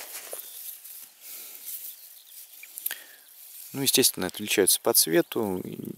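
Grass rustles and soil tears softly as a hand pulls up a seedling.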